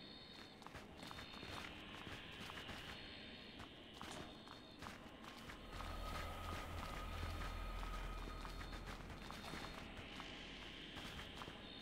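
Small footsteps patter on stone.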